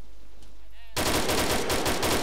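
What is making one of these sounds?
A rifle fires a rapid burst of loud shots close by.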